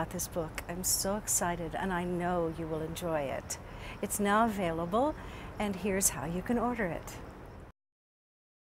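A woman speaks warmly and clearly into a close microphone.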